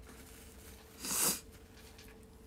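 A young woman blows out a sharp puff of breath.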